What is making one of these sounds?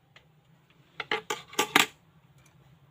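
Scissors snip and clack a few times.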